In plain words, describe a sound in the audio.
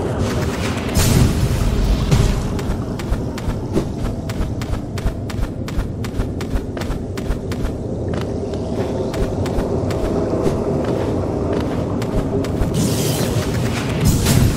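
A blade swishes sharply through the air.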